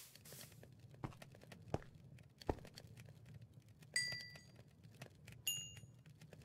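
Sharp clicks sound a few times.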